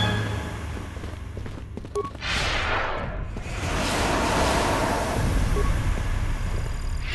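A lightsaber hums steadily.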